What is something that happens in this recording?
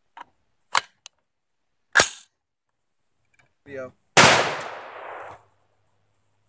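A rifle fires sharp, loud shots that echo outdoors.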